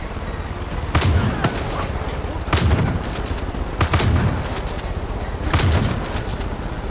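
A shotgun fires loud blasts that echo outdoors.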